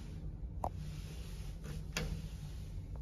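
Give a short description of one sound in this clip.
A finger presses an elevator button with a soft click.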